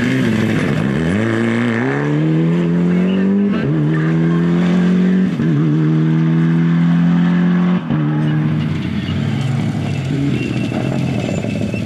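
Tyres crunch and spray gravel on a dirt road.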